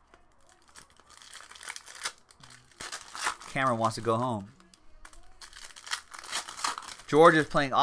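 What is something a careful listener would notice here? Cardboard packs rustle and tear open.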